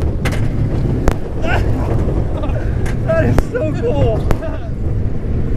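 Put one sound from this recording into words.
A roller coaster rattles and rumbles loudly along its track.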